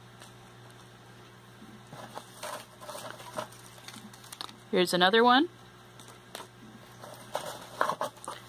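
Paper shreds rustle and crinkle as hands dig through them.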